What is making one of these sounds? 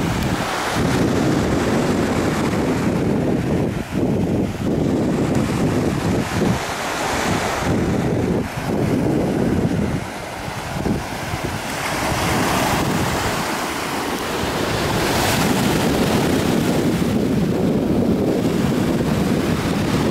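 Waves wash up onto a pebble beach and hiss as they pull back.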